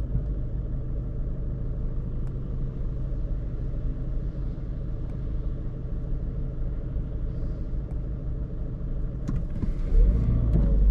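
A car engine idles steadily from inside the car.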